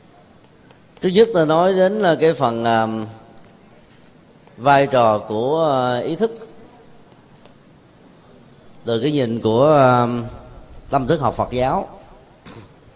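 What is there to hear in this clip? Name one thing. A man speaks steadily to a room through a microphone, in short phrases.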